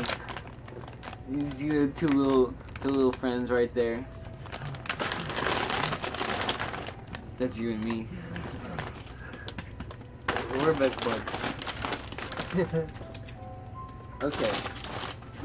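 A chip bag crinkles and rustles.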